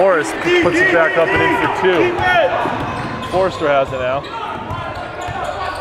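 A basketball bounces on a hard floor in an echoing hall.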